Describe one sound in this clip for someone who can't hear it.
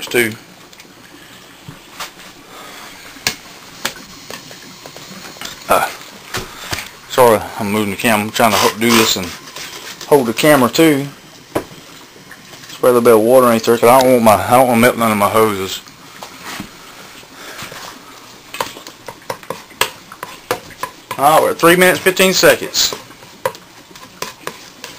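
A spatula scrapes and clicks against a frying pan.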